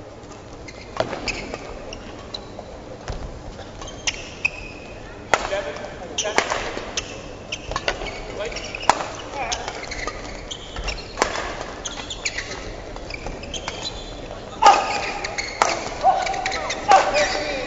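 Athletic shoes squeak on an indoor court.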